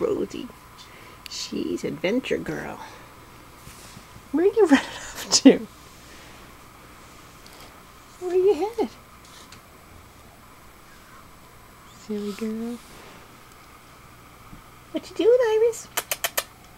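A small kitten meows repeatedly in short, rising cries.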